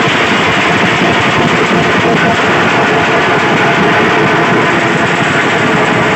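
Several large drums pound in a loud, fast, steady rhythm outdoors.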